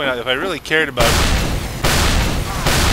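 A rocket launcher fires with a loud whoosh.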